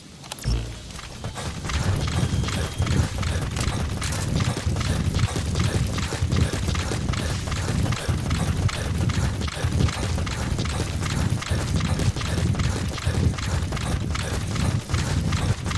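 Footsteps run quickly over dry dirt and grass.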